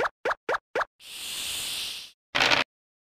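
A die rattles as it rolls.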